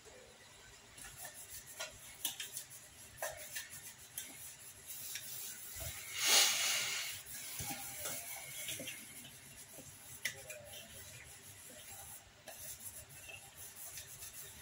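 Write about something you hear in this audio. A hand scrubs a metal bowl with a rough, rubbing sound.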